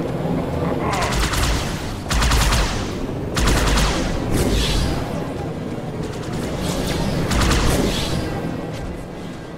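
Energy weapons fire in rapid crackling bursts.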